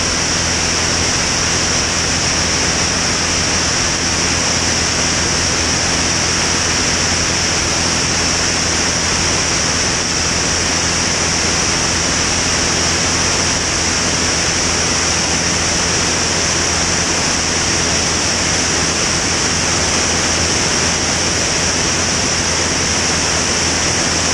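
A small propeller plane's engine drones loudly and steadily.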